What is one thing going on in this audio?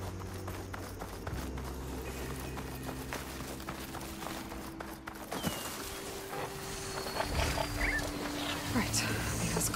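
Leaves and grass rustle as someone pushes through dense plants.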